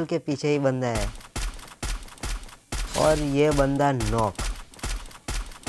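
A rifle fires in rapid shots.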